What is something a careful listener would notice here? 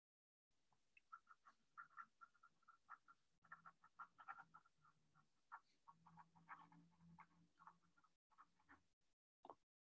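A woman speaks quietly over an online call.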